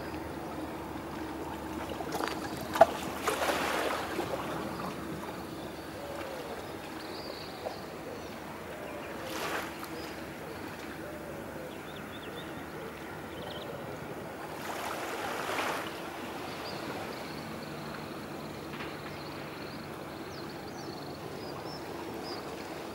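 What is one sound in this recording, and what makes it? Water laps softly at the shore.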